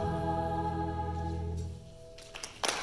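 A choir and band hold a final chord that ends abruptly.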